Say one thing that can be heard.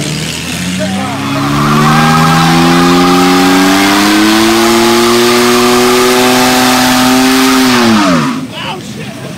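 Tyres squeal and hiss as they spin on the road.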